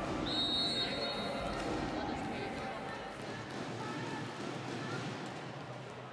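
A volleyball bounces on a hard court floor.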